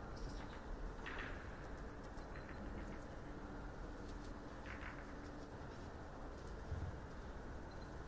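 Billiard balls knock and clack against each other.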